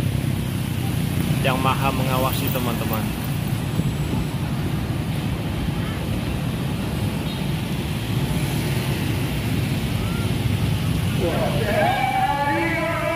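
Motorbike engines hum as they pass close by.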